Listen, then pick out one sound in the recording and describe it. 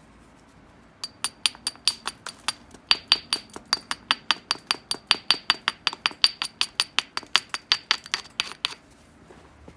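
A stone taps rapidly against the edge of a piece of glassy rock, making sharp clicking chips.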